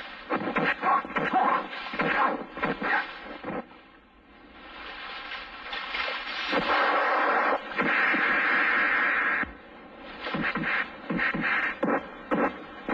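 Heavy rain pours down with a steady hiss.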